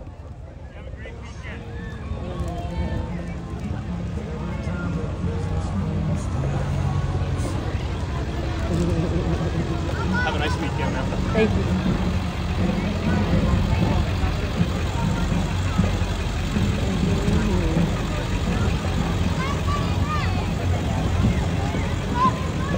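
Truck engines rumble slowly past outdoors.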